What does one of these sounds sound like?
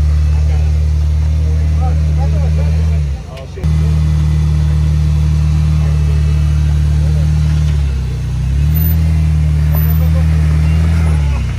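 A vehicle engine rumbles low and steady, dropping briefly twice.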